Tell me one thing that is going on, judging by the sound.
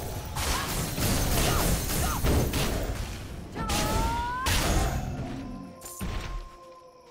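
Magic blasts crackle and boom in a fierce fight.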